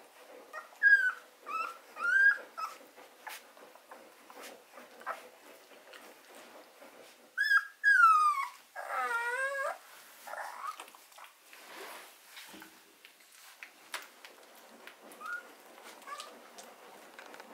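Puppies suckle with soft wet smacking sounds.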